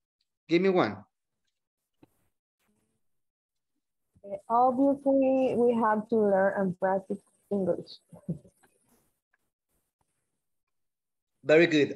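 A woman speaks calmly, heard through an online call.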